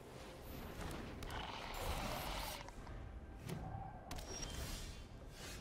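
A soft electronic whoosh and chime mark a change of turn.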